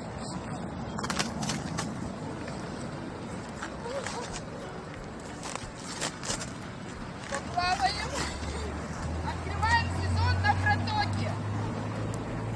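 Water splashes as a woman wades into icy water.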